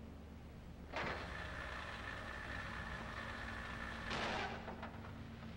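A wooden crate scrapes along the ground.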